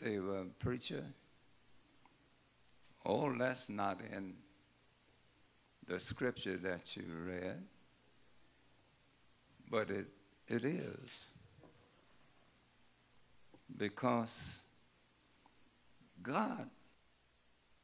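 An elderly man preaches through a microphone in short bursts with pauses.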